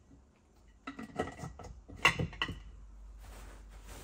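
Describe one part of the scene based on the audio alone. Objects clink and clatter on a shelf.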